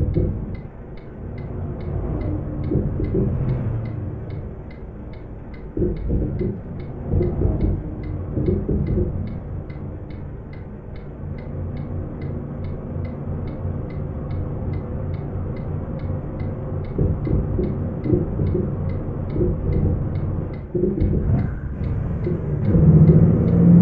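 A diesel truck engine drones while cruising.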